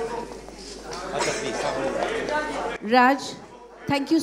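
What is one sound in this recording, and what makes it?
A woman speaks into a microphone over a loudspeaker.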